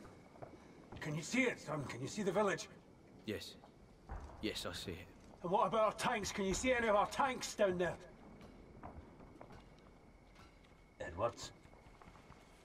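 A young man answers quietly close by.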